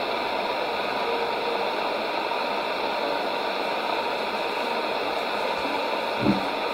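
A shortwave radio hisses with steady static and faint, fading reception.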